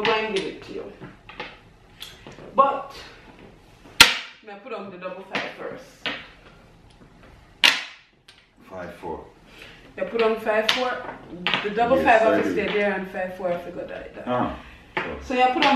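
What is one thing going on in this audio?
Game tiles click on a table.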